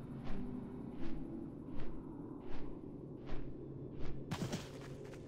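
Large wings flap in steady, whooshing beats.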